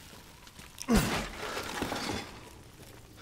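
A wooden crate smashes and splinters apart.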